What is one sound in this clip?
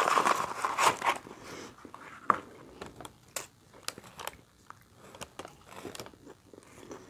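A person chews food with wet, smacking mouth sounds close to the microphone.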